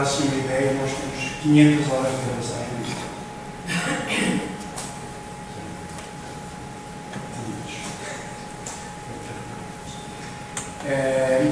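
A man speaks through a microphone, with pauses.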